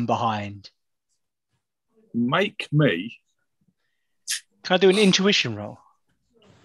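A man speaks with animation over an online call, heard through a microphone.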